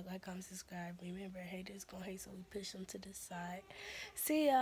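A young woman talks casually close to the microphone.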